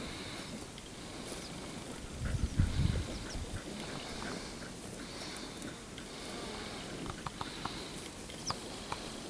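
Cows tear and munch grass close by.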